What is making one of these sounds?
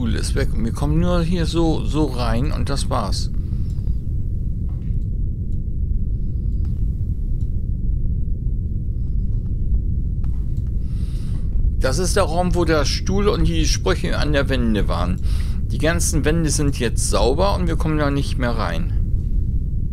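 A woman speaks with animation into a microphone, heard as over an online stream.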